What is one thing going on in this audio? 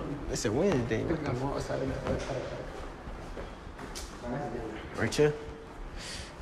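Young men talk and laugh nearby with animation.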